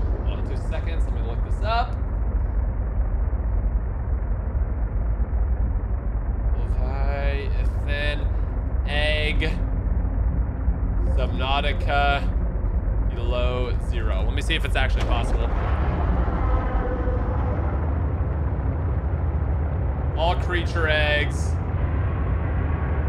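Deep underwater rumbling drones steadily.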